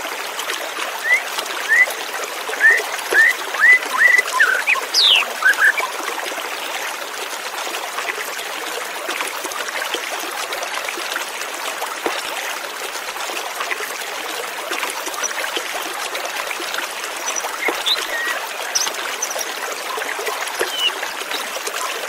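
A white-rumped shama sings.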